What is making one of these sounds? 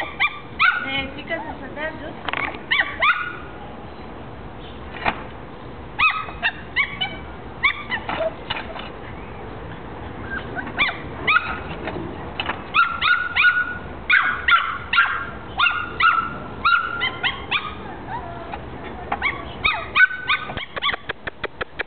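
Loose tiles clink and clatter under a puppy's paws.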